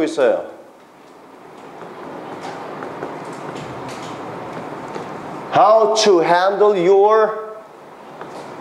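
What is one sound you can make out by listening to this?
A man speaks calmly and clearly.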